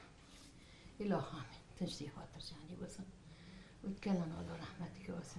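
An elderly woman speaks softly and slowly nearby.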